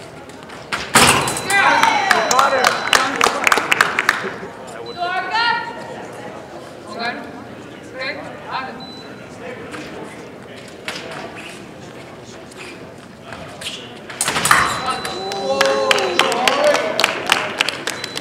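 Spectators cheer loudly in an echoing hall.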